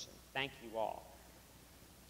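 A man speaks briefly in a large echoing room.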